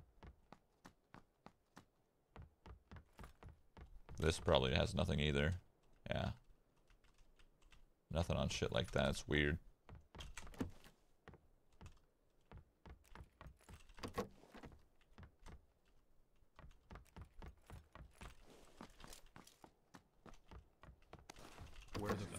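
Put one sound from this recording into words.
Footsteps thud quickly on wooden floors.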